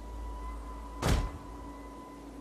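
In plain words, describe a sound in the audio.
A volley of arrows whooshes through the air.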